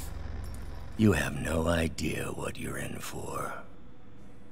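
A man speaks in a low, threatening voice.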